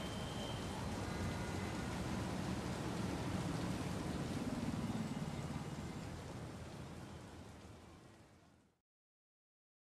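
Rain falls steadily outdoors and fades away.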